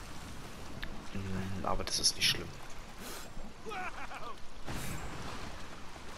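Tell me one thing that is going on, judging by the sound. Water splashes as a swimmer paddles close by.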